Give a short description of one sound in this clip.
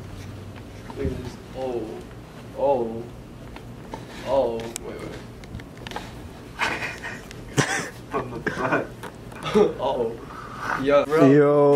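A young man talks with animation close by.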